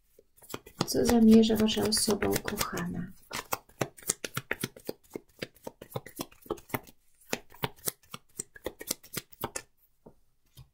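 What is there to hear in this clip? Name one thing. Playing cards riffle and flutter quickly while being shuffled by hand.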